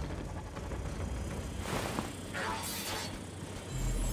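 A large creature shrieks and gurgles as it dies.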